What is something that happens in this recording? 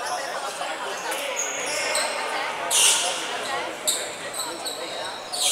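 Sneakers squeak sharply on a wooden floor in a large echoing hall.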